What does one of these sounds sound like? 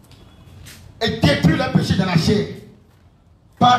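A young man preaches loudly and with animation into a microphone, heard through loudspeakers.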